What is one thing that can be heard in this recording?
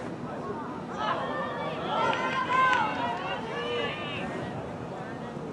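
Nearby adult spectators, men and women, shout and cheer excitedly outdoors.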